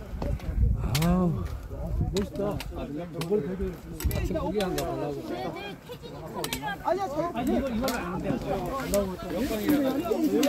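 Several men and women talk and chatter with animation nearby, outdoors.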